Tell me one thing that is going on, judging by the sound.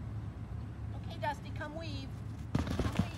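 A woman calls out to a dog with animation.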